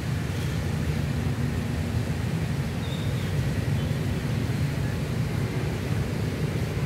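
Wind blows steadily through the trees and rumbles outdoors.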